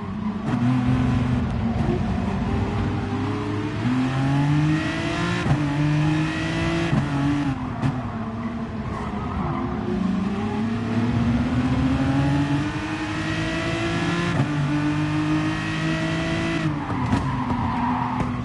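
A race car engine revs hard, rising in pitch as it speeds up and dropping with each gear change.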